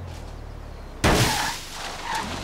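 A car crashes hard into a tree with a loud thud.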